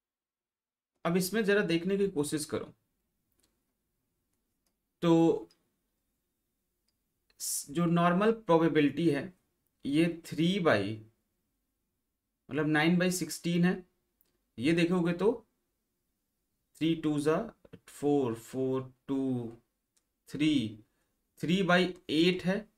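A young man explains calmly into a close microphone, in short bursts with pauses.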